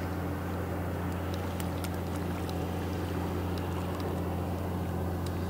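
Water splashes as a landing net is pulled through it.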